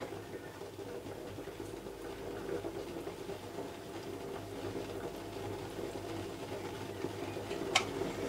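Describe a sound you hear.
Juice trickles from a juicer into a blender jug.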